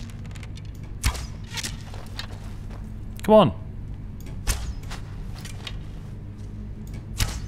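A bowstring snaps sharply as an arrow is loosed.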